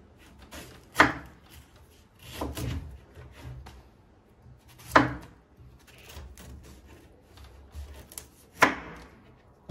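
A knife blade chops into a firm fruit, knocking against a wooden board.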